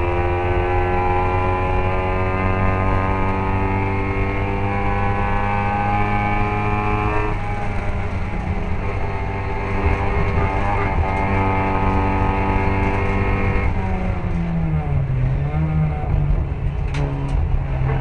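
A racing car engine roars loudly at high revs, heard from inside a car.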